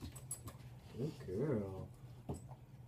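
A man speaks playfully to a dog close by.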